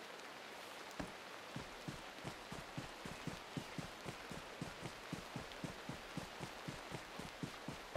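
Heavy footsteps thud quickly and evenly on grass and dirt.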